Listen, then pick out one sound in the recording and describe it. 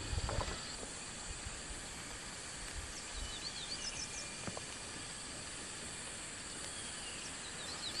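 Leafy plants rustle as a hand pulls at them.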